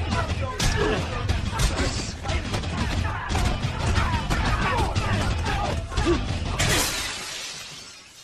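A young man shouts wildly up close.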